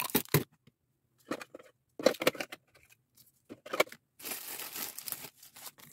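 Small wrapped candies clatter as they are handled.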